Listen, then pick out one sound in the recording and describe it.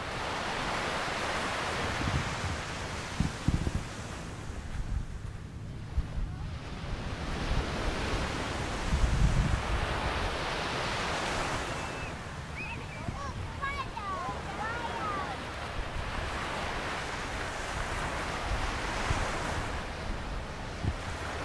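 Waves wash steadily onto a sandy shore.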